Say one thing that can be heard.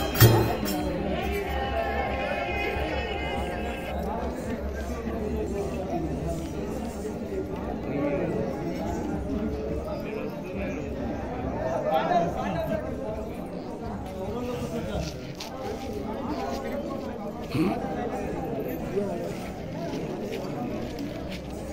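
A man sings loudly through a loudspeaker, outdoors.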